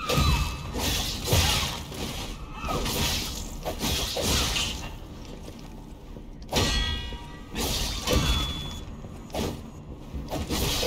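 Blades clash and swoosh in rapid bursts.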